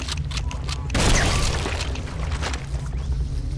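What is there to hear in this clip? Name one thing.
An explosion bursts with a loud whoosh.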